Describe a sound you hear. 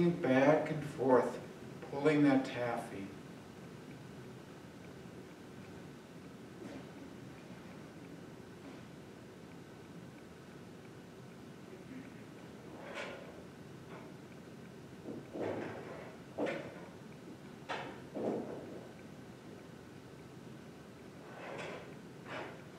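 A middle-aged man speaks calmly in an echoing room, pausing often.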